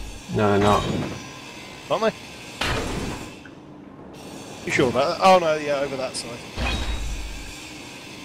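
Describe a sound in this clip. A power grinder whirs and grinds against metal.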